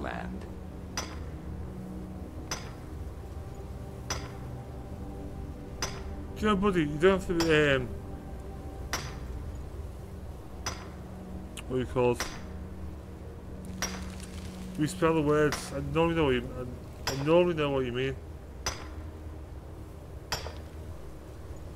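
A pickaxe strikes rock again and again at a steady pace.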